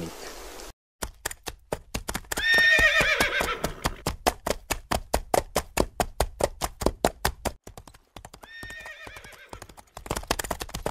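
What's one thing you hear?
Horse hooves clop steadily along a road.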